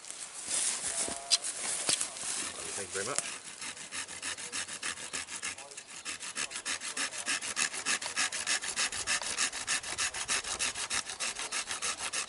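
A knife blade scrapes rapidly along a wooden stick in quick, even strokes.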